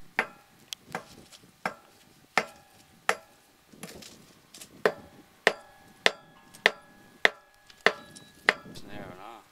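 A sledgehammer strikes a steel rail spike with sharp ringing clangs.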